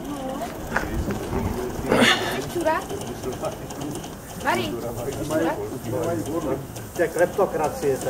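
A small steam locomotive chuffs and hisses.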